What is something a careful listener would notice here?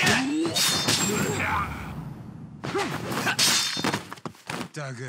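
Punches land with heavy thuds in a fight.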